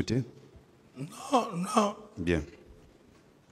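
A second man answers with animation through a microphone.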